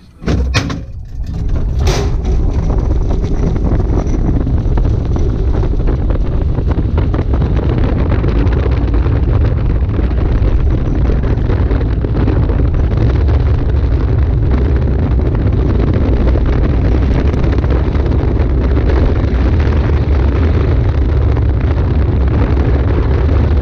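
A small kart engine roars steadily as the kart drives along.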